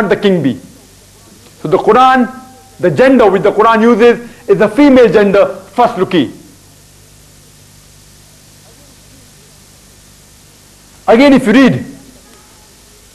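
A young man speaks with animation through a clip-on microphone, in short bursts with pauses.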